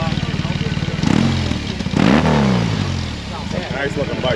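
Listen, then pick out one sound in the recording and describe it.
A motorcycle engine revs sharply twice, then winds back down.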